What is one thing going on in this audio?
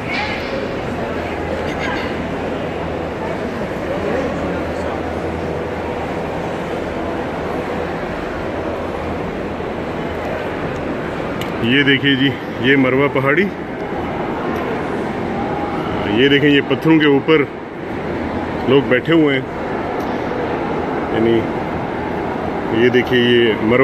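A large crowd murmurs and chatters in a big echoing space.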